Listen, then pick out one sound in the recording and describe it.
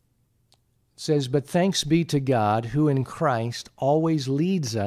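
A man reads aloud calmly and close to a microphone.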